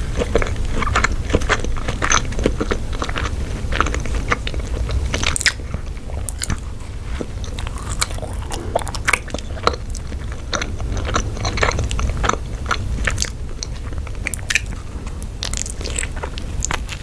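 A young woman chews food wetly and loudly close to a microphone.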